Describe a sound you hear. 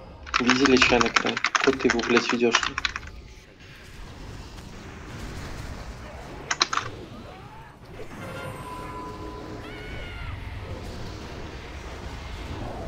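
Magic spells crackle and whoosh in a busy battle.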